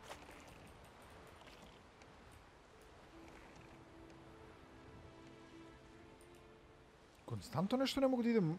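Water laps gently against a boat.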